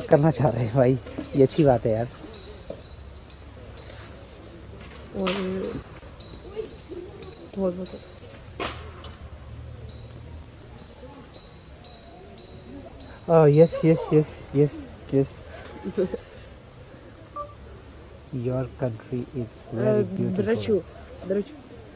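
A man talks close by, with animation.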